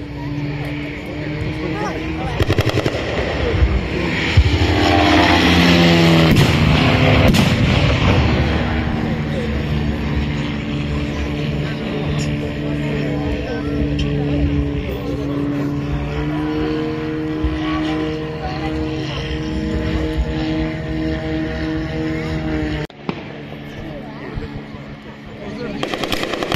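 A propeller plane engine drones overhead, rising and falling in pitch as it passes.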